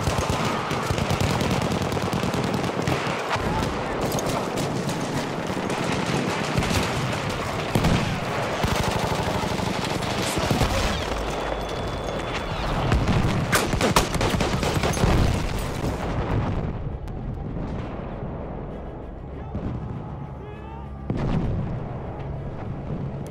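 Explosions rumble nearby.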